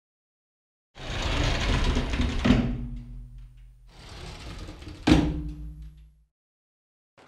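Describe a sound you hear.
A heavy wooden door creaks slowly open and thuds.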